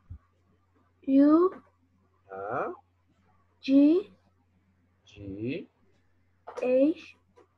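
A young person speaks slowly through an online call, saying words one at a time.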